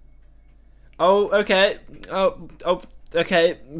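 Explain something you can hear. A young man speaks loudly with animation close to a microphone.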